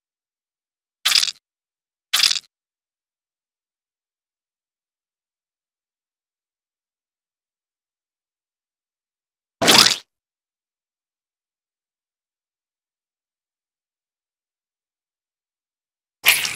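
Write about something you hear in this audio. Short squelching splats sound a few times as bugs are squashed.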